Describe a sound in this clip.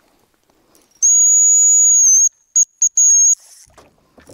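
A fishing reel's drag whines loudly as line is pulled out.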